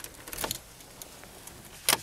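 A key clicks in a car's ignition.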